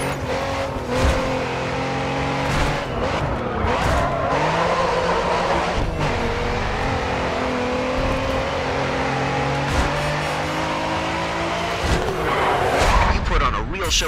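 A sports car engine roars at speed and shifts through the gears.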